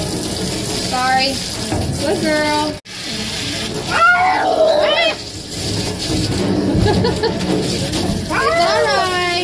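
A young woman talks softly and close by.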